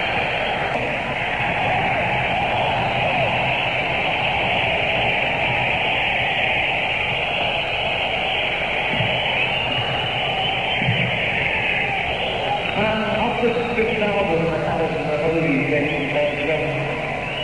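A rock band plays loudly on a live stage.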